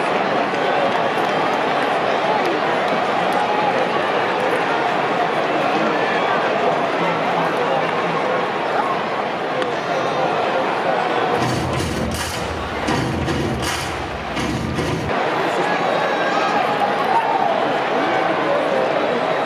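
A large stadium crowd murmurs and chatters steadily.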